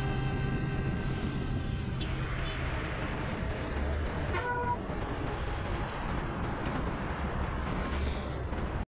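Traffic rumbles past on a busy road.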